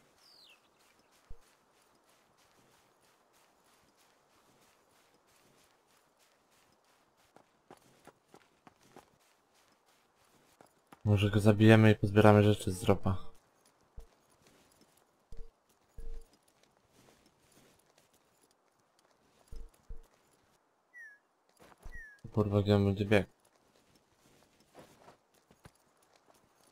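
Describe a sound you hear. Footsteps run over grass and rock.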